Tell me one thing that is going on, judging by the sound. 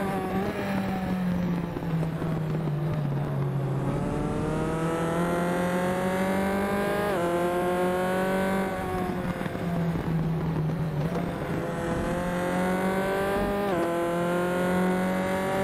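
Other racing car engines drone nearby.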